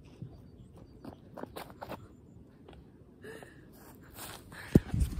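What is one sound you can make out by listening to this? Feet land on grass with soft thumps during jumping.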